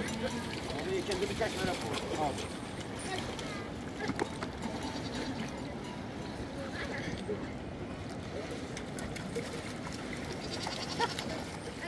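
Water splashes as a goat is hauled through the shallows.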